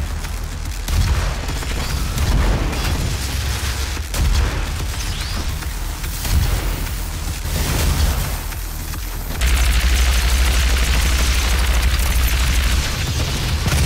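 Explosions rumble and crash.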